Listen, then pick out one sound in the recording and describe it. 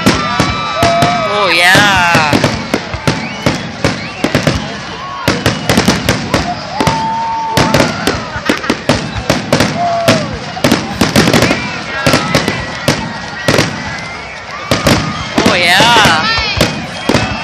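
Fireworks whistle as they shoot up.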